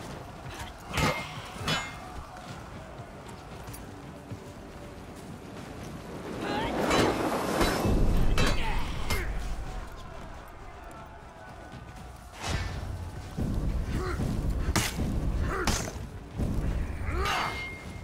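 Metal blades clash and strike.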